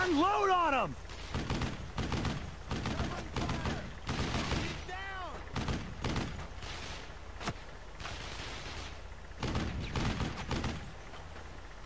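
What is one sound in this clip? A rifle fires repeated sharp shots.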